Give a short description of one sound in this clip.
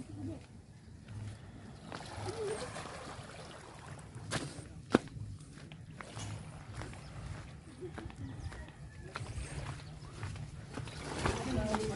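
Small waves lap gently at the shore.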